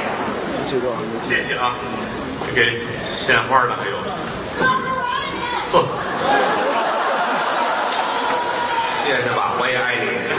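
A second middle-aged man answers through a microphone.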